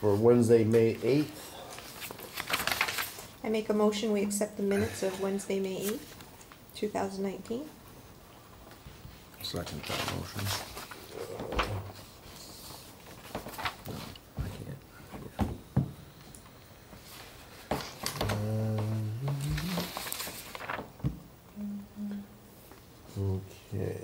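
Papers rustle on a table.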